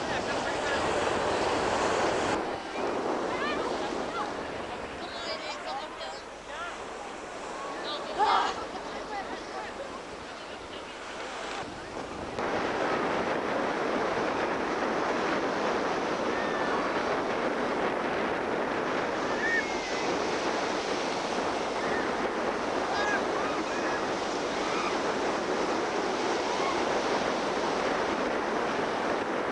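Wind blows across the microphone outdoors.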